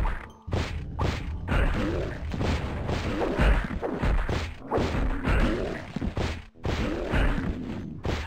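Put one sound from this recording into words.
Beasts growl and roar close by.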